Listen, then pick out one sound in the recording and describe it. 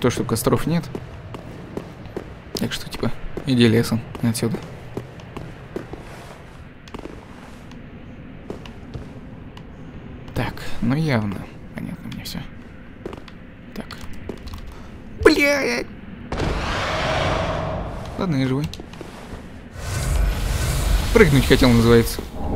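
Armoured footsteps thud on stone.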